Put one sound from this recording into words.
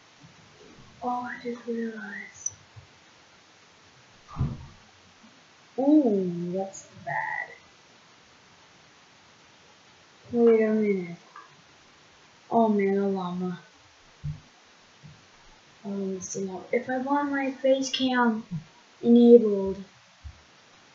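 A boy talks close to a microphone in short bursts, with animation.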